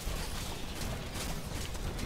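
Electric energy crackles and zaps.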